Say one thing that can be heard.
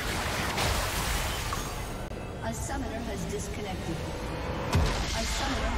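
Magic spells crackle and burst in a busy fight.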